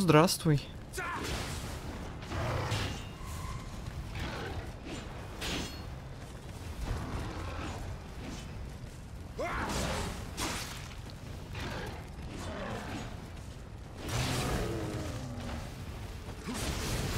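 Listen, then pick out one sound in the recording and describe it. Swords clash and slash in rapid strikes.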